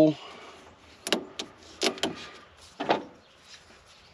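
Pliers click and snap on metal wire.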